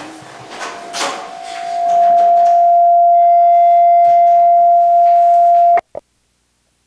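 A microphone whines with a steady feedback tone.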